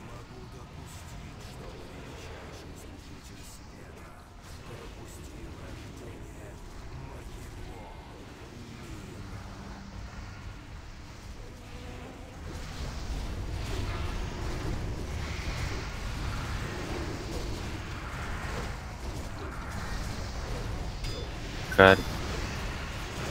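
Spell effects and combat sounds from a game clash and whoosh throughout.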